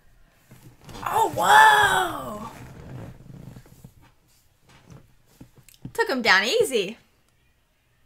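A young woman exclaims in surprise and talks with animation close by.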